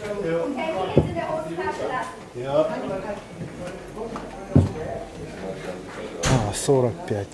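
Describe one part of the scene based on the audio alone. A hand taps on a wooden carving.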